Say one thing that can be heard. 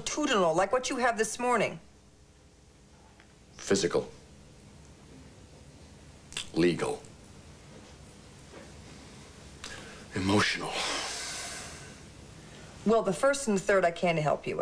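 A middle-aged woman speaks calmly up close.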